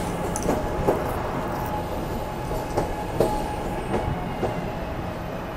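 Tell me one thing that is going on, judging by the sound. Train wheels clack over rail joints in irregular knocks.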